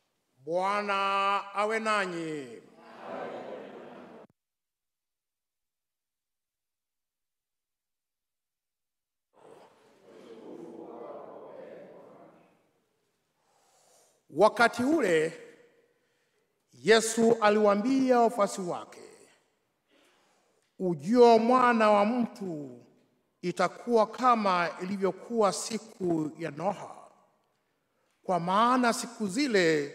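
A man chants and speaks through a microphone in an echoing hall, in slow, measured phrases.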